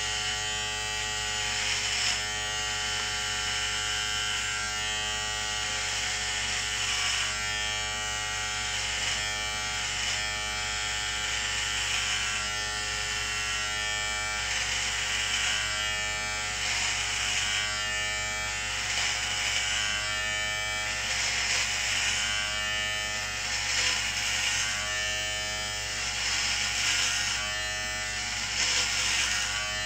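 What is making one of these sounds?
An electric razor buzzes steadily against stubble.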